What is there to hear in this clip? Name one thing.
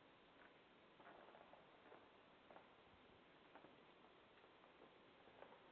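Footsteps walk softly across the floor of an echoing hall.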